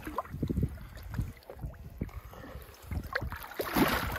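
Water splashes softly beside a boat.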